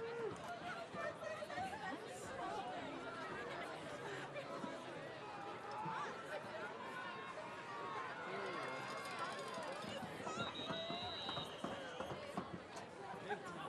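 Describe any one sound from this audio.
A crowd of people chatter and call out nearby outdoors.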